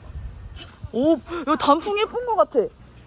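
A young woman exclaims with delight.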